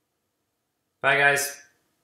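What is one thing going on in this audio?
A young man speaks through an online call.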